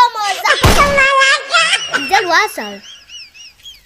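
A young boy speaks close to the microphone with animation.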